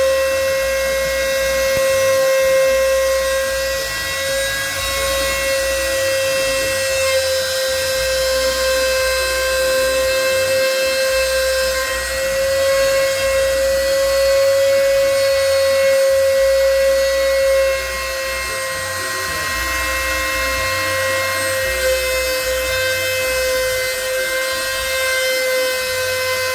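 A cutting machine whines steadily.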